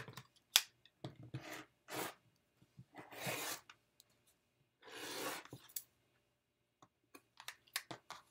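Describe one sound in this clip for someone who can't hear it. A rotary cutter slices through fabric in short strokes.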